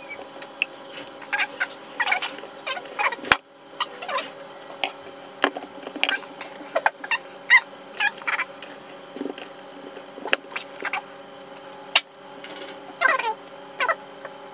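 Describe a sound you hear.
Fingers splash in a bowl of beaten egg.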